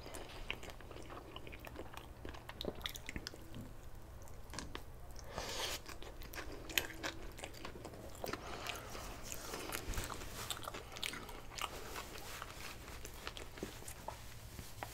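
A man chews food wetly and loudly, close to a microphone.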